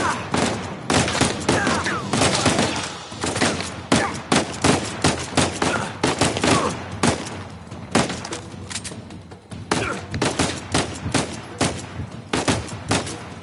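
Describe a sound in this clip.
Pistol shots ring out in rapid bursts, echoing sharply.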